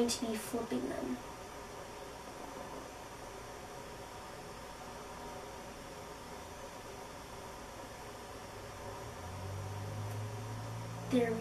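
Hair rustles softly as fingers braid it close by.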